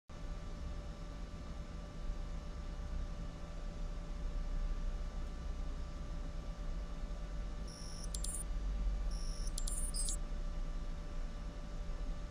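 Computer equipment hums steadily.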